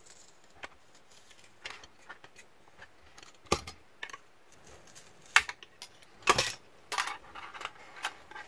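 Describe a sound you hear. Hard plastic clicks and rattles close by as it is handled.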